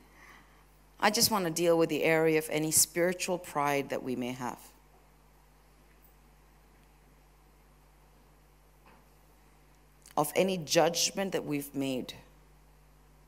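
A woman speaks with feeling into a microphone, heard over loudspeakers in a large hall.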